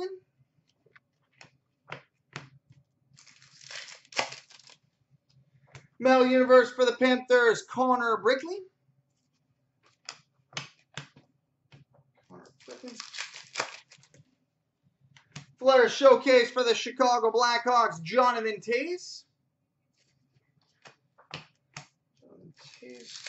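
Trading cards tap and rustle as hands sort them.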